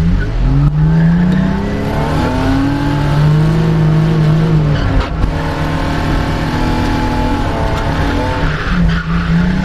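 Tyres screech on tarmac as a car slides.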